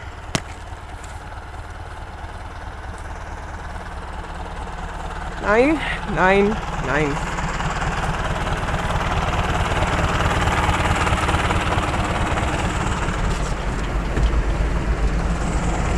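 A tractor engine rumbles steadily nearby, growing louder on approach.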